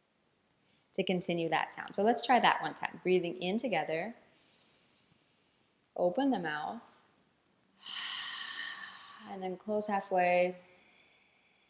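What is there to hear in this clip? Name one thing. A young woman speaks calmly and softly close to a microphone.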